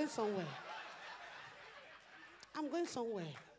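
An audience laughs in a room.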